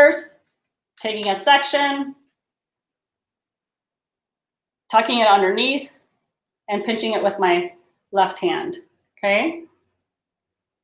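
A woman speaks calmly and clearly close to a microphone, in short phrases.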